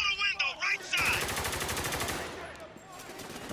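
A rifle fires a few shots.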